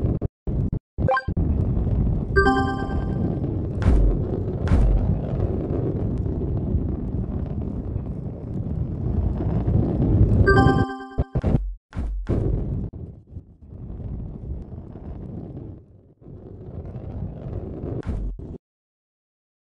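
A ball rolls along with a low, steady rumble.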